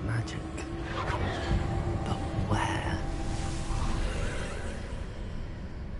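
A magic spell bursts with a whooshing crackle.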